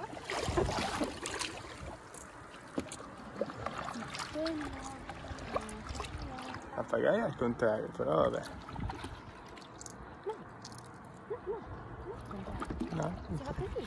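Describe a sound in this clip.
A paddle splashes and dips into the water.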